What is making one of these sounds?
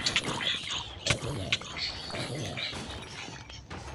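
Sword blows thud against creatures in a video game.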